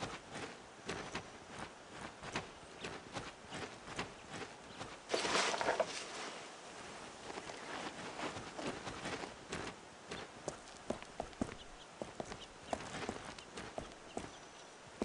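Footsteps tread steadily at a walking pace.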